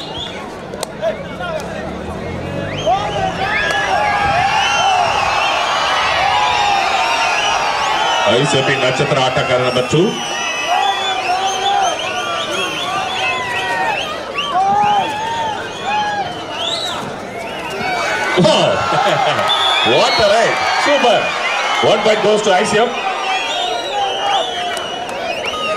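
A large crowd cheers and shouts loudly in a big echoing space.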